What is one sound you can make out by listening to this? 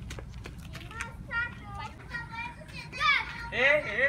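Boys shout and call out excitedly nearby.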